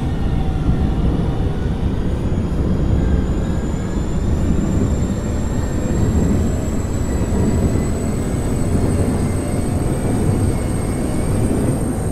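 A train motor whines, slowly rising in pitch.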